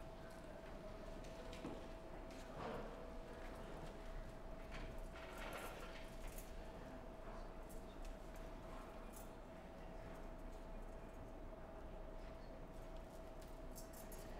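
Fabric rustles as a woman handles cloth.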